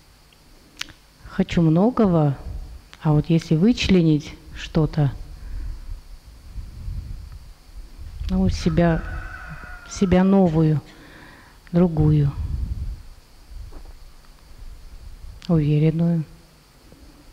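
A woman speaks calmly through a close microphone.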